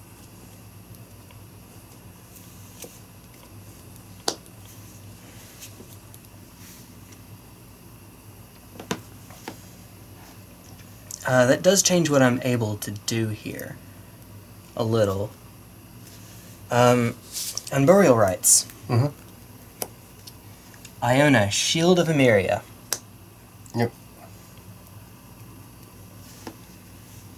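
Playing cards tap and slide softly.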